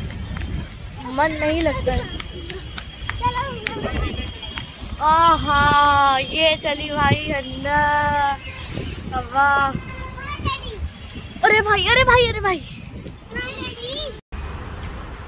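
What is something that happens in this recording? A girl talks with animation close to a microphone.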